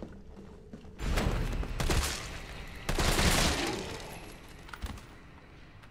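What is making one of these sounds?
Gunshots boom loudly in quick bursts.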